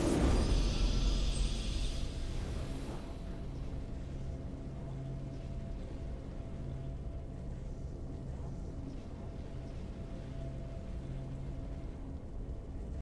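A triumphant victory fanfare plays in a video game.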